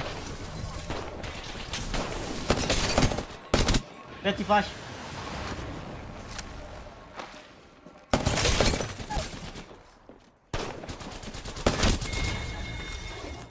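Gunfire bursts out in quick rattling volleys.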